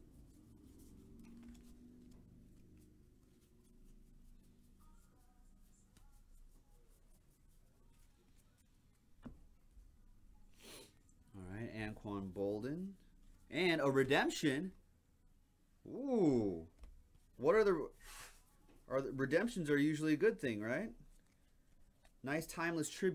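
Trading cards rustle and flick in hands.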